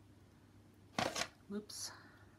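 A canvas is set down on a table with a soft knock.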